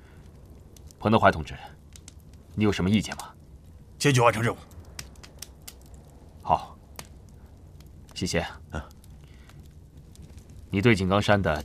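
A man speaks firmly, nearby, in short bursts.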